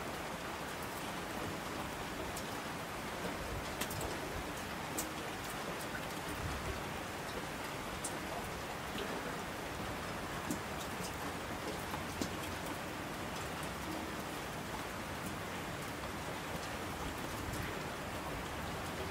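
Streams of water rush and tumble down slopes.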